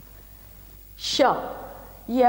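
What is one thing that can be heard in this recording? A woman speaks loudly and clearly nearby.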